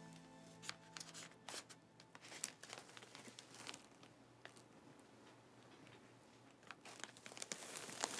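Cellophane wrapping on a bouquet crinkles and rustles.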